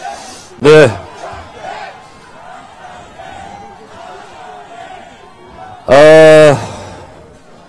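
A middle-aged man shouts loudly into a microphone, heard through a loudspeaker.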